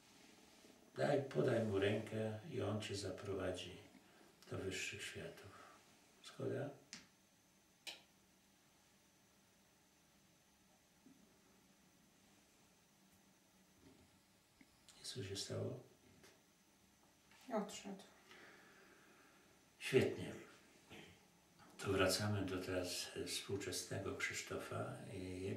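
An elderly man speaks calmly and softly nearby, with long pauses.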